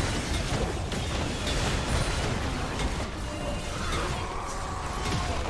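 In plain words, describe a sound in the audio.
Blows and blasts thud sharply again and again.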